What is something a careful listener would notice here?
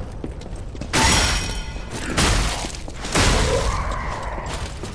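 Heavy blades swing and clash in loud bursts.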